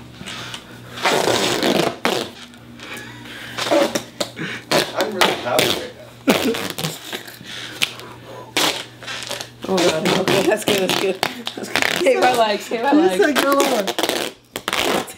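Duct tape rips loudly as it is pulled from the roll.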